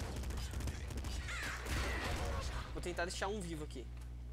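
Video game explosions thud and crackle.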